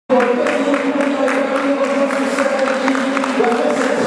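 A crowd claps its hands.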